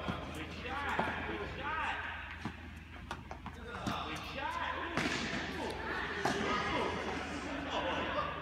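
Tennis balls thump off rackets in a large echoing hall.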